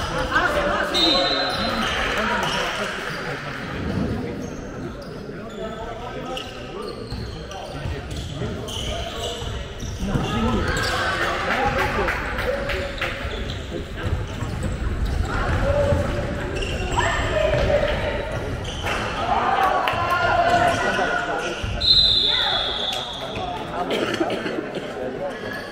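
Young male players shout to each other in an echoing hall.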